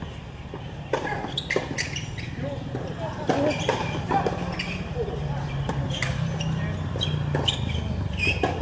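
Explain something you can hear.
A tennis ball bounces on a hard court with sharp taps.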